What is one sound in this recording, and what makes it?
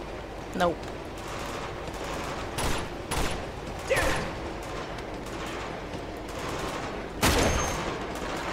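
Gunshots crack in an echoing tunnel.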